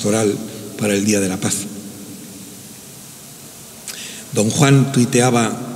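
An elderly man speaks calmly and slowly into a microphone in a large echoing hall.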